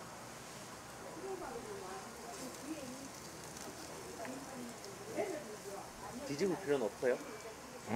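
Chopsticks scrape and tap against a frying pan.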